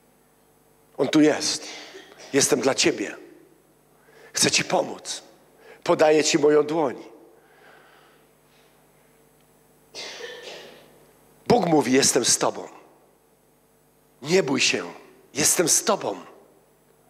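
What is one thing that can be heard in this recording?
A middle-aged man speaks with animation into a microphone, in short bursts with pauses, in a room with some echo.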